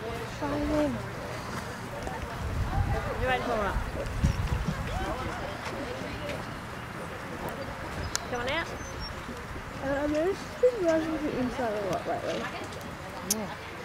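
A horse's hooves thud softly on grass.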